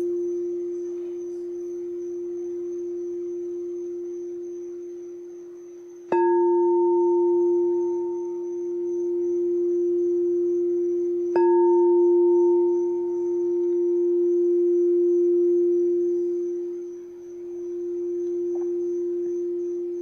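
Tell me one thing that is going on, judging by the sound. A crystal singing bowl hums with a steady, pure ringing tone.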